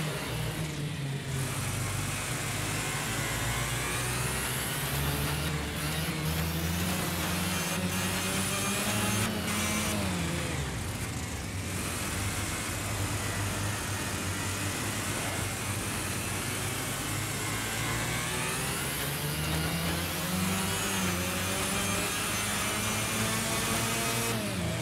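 A kart engine buzzes loudly, rising and falling in pitch as it speeds up and slows down.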